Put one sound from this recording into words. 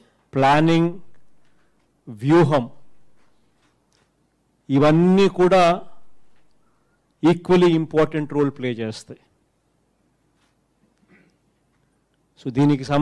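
A man speaks forcefully into a microphone in short bursts, with a room echo after each phrase.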